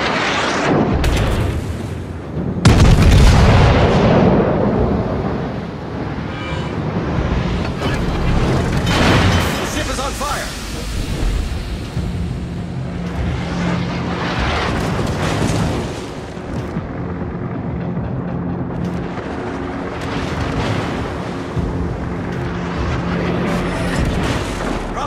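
Heavy naval guns fire with deep, loud booms.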